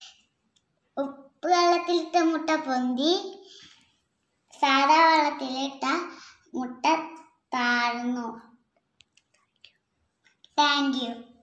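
A young child speaks with animation close by.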